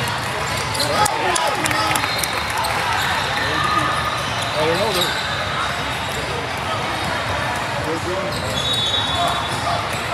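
A crowd of voices echoes through a large hall.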